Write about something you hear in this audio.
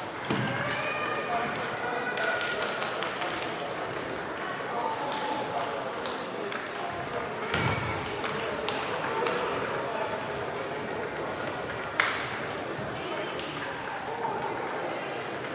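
Table tennis balls click on tables and paddles throughout a large echoing hall.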